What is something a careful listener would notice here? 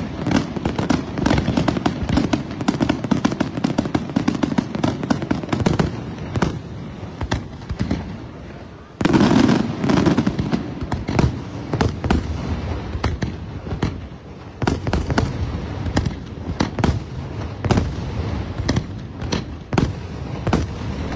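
Fireworks crackle and fizzle rapidly.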